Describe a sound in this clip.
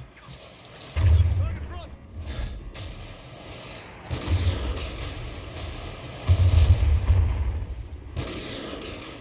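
Heavy debris crashes down with deep rumbling booms.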